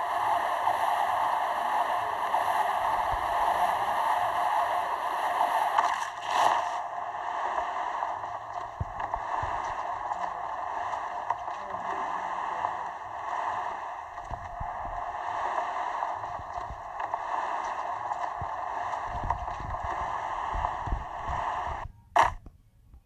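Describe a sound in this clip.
Wind rushes steadily past a falling figure.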